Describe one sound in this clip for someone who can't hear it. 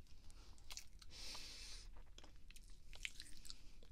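A young woman makes soft mouth sounds very close to a microphone.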